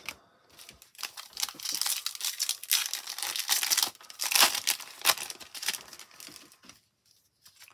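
A foil wrapper crinkles as a pack is torn open.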